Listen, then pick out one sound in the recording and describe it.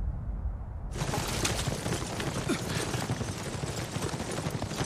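Horses gallop with pounding hooves.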